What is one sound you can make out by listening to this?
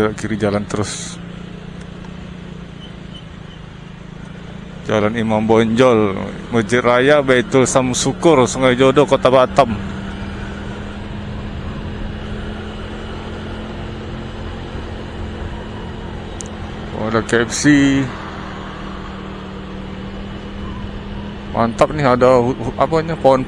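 A car engine hums steadily as it drives along a road.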